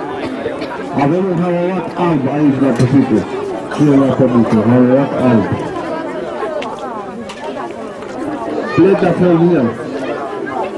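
A man speaks loudly through a loudspeaker outdoors.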